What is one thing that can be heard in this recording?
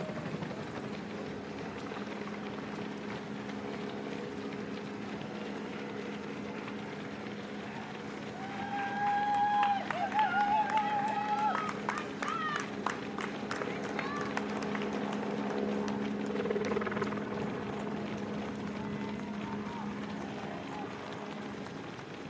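Many runners' footsteps patter on a paved road.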